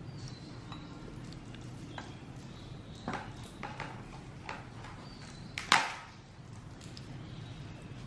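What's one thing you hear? Chopsticks clink lightly against a ceramic bowl.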